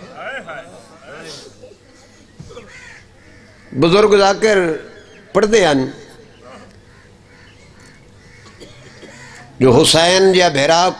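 A man recites loudly and passionately into a microphone, with pauses between lines.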